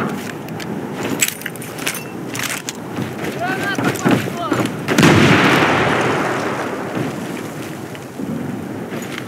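Footsteps clang on a metal grating walkway.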